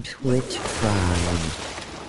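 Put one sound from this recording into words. Rocks burst apart and crumble.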